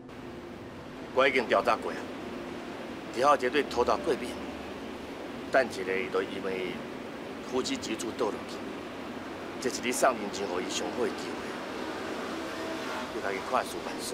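A middle-aged man speaks firmly into a phone.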